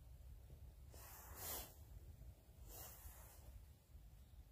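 A woman breathes out heavily.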